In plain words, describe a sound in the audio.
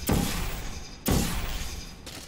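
A futuristic energy gun fires with a short electronic zap.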